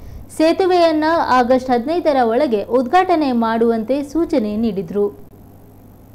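A young woman reads out the news calmly and clearly into a microphone.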